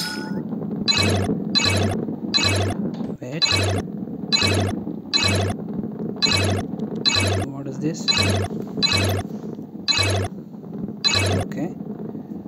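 Short bright chimes ring out one after another as coins are collected.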